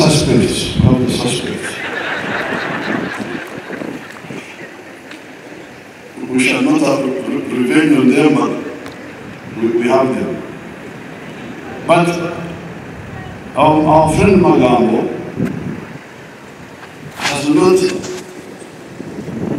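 An elderly man speaks with animation into a microphone over a loudspeaker.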